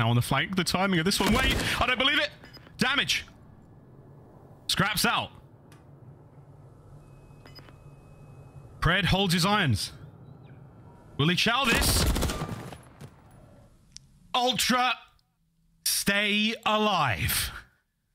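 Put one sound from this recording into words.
A young man talks excitedly over a microphone, in quick bursts.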